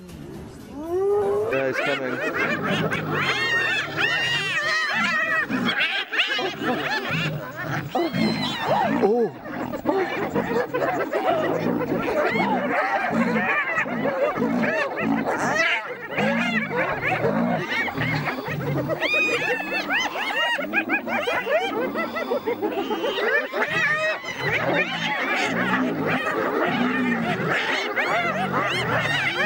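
A lion growls and snarls.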